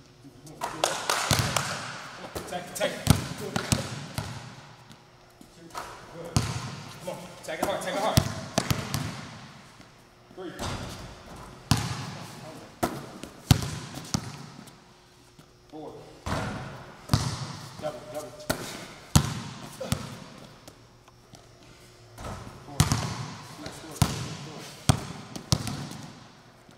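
A basketball bounces sharply on a hard floor in a large echoing hall.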